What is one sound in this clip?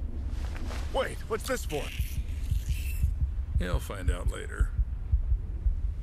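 An elderly man speaks calmly and low.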